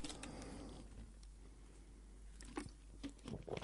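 A man gulps water from a plastic bottle.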